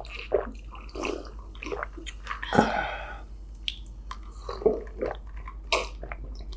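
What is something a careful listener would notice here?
A girl sips and swallows a drink close to a microphone.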